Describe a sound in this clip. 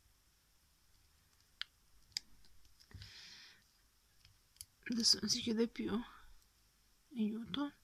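A small plastic case clicks shut and snaps open.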